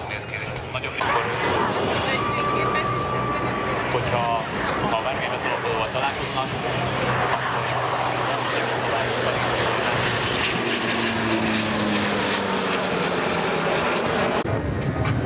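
A jet airliner rumbles faintly far overhead.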